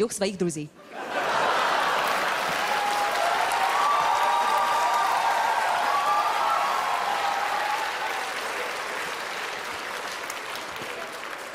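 An audience laughs and applauds loudly.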